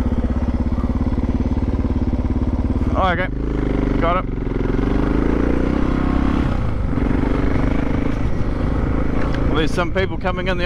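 A motorcycle engine runs and revs close by.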